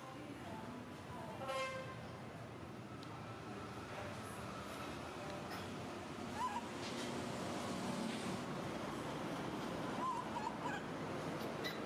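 A baby monkey chews and sucks on food with soft wet smacking sounds.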